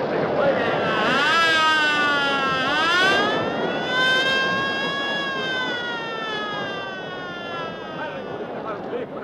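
Ambulance sirens wail, rising and falling.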